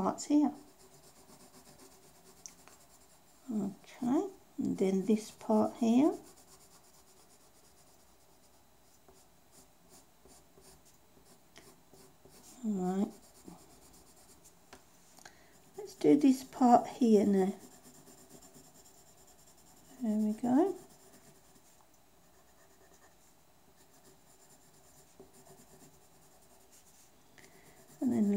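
A colored pencil scratches softly on paper.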